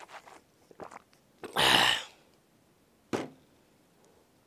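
A man speaks briefly and calmly into a close microphone, with pauses.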